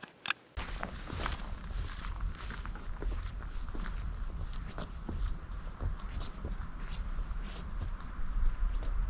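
Footsteps crunch through dry leaves, close at first and slowly moving away.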